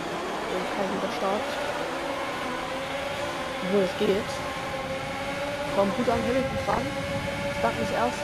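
Other racing car engines whine close by.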